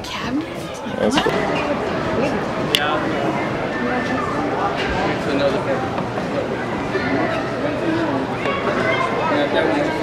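Many people chatter in a large, echoing hall.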